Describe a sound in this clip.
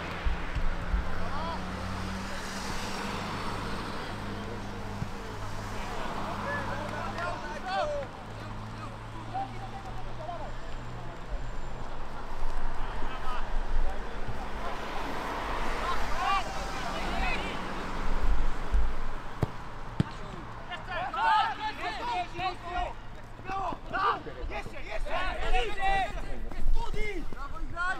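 Young men shout to each other across an open field.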